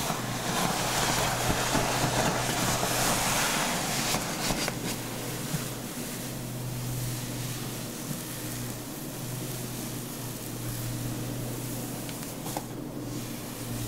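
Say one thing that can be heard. Hands rub and massage wet hair.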